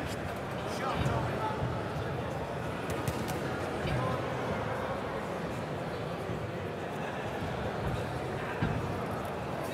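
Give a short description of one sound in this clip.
Gloved punches land with dull thuds.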